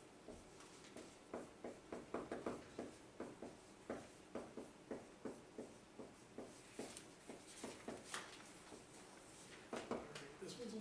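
A marker taps and squeaks on a whiteboard in quick strokes.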